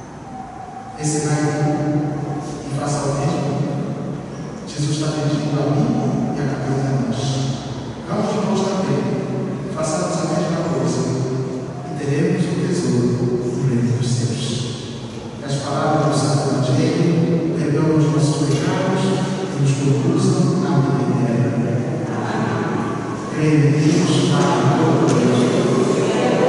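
An adult man speaks in a large echoing hall.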